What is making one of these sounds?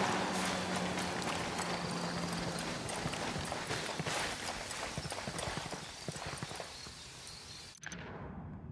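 Footsteps rustle through dry grass and bushes.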